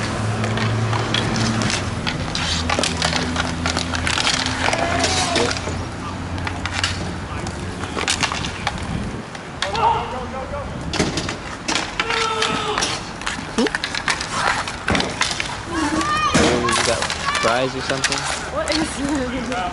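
Skates roll and scrape on a hard rink surface.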